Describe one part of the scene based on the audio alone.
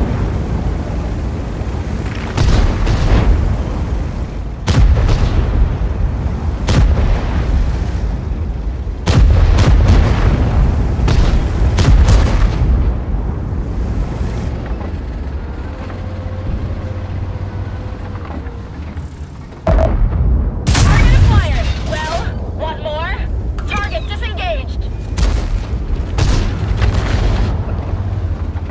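A heavy tank's engine rumbles as it drives.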